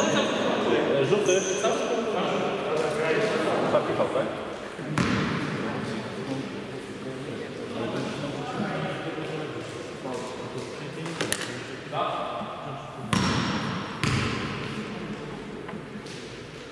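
Men call out to each other in a large echoing gym.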